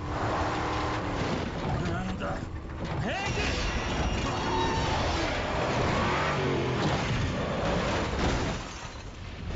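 A truck engine roars as it drives.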